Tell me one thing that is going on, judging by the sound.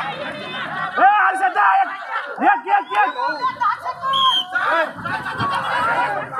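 Men nearby shout with excitement.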